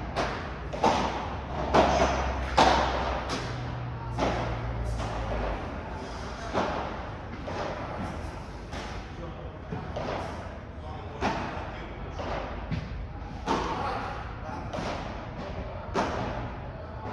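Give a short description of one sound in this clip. Padel rackets pop sharply against a ball in a hard, echoing hall.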